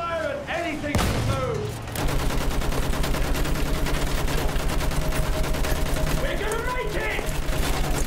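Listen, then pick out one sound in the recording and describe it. A machine gun fires in rapid, steady bursts close by.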